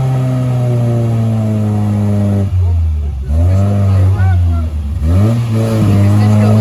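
An engine revs hard, rising and falling in pitch.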